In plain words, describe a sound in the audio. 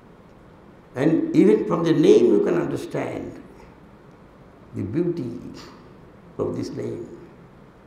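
An elderly man speaks calmly into a microphone, heard through a loudspeaker in a room that echoes.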